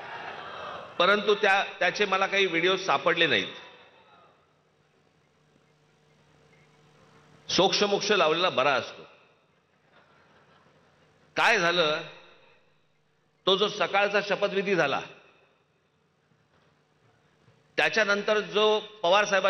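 A man speaks forcefully into a microphone over loudspeakers, in short bursts with pauses between.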